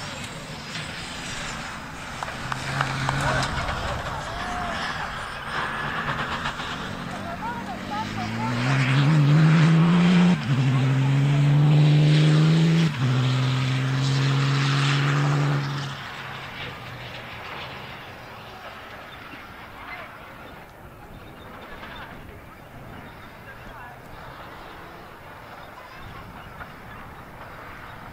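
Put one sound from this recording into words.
A rally car's tyres spray loose dirt.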